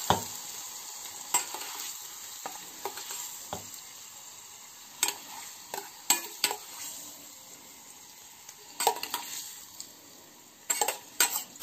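A metal spoon clinks and scrapes against a small metal pan.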